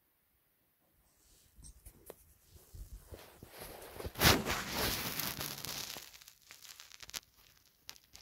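A knitted blanket rustles as it is moved.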